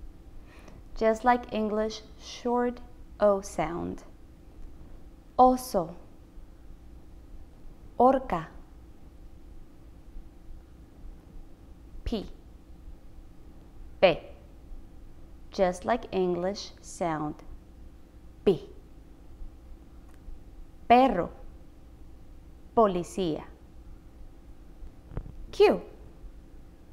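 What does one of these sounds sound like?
A young woman speaks calmly and clearly into a close microphone, pronouncing single words with pauses between them.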